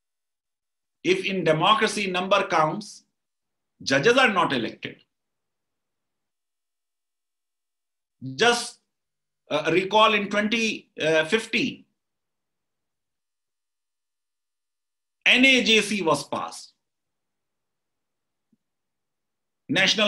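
A middle-aged man speaks calmly in short bursts over an online call.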